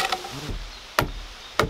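A mallet strikes wood with a sharp knock.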